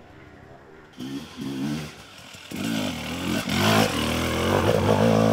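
An enduro dirt bike revs hard up a steep rocky climb close by.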